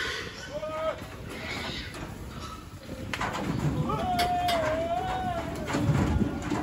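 Pigs squeal shrilly.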